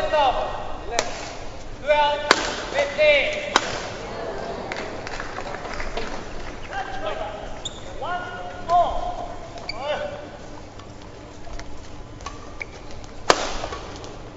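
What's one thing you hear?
A badminton racket strikes a shuttlecock with sharp cracks.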